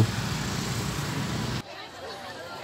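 A motorbike engine hums as the motorbike rolls past slowly.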